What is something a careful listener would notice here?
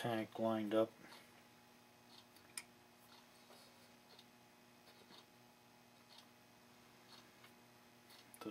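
Small metal parts click and tap lightly on a wooden surface.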